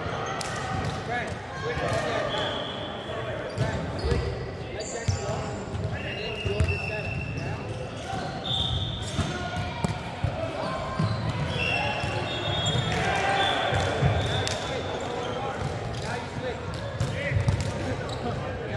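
Young men call out and talk during play.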